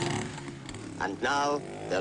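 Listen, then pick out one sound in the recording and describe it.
A motorcycle engine revs.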